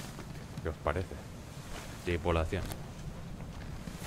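Paper pages turn with a soft rustle.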